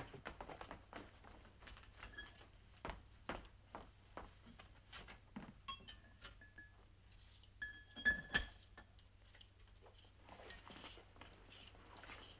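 Dishes clink and knock at a sink.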